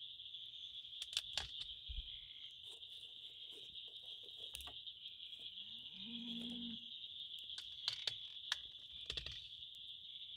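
Sticks of wood knock against a metal stove as they are fed in.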